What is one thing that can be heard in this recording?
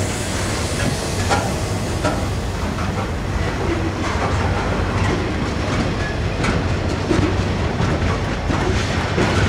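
A slow train of freight cars rolls past with a low rumble.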